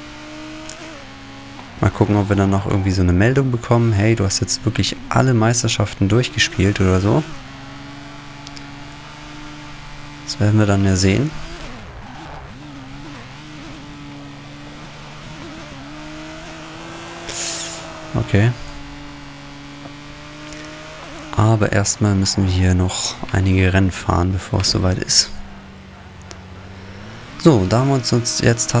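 A racing car engine hums steadily, rising and falling in pitch.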